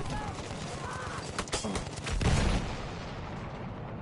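Explosions boom nearby.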